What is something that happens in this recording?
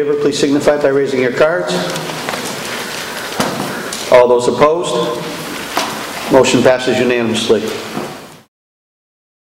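A man speaks loudly in a large room.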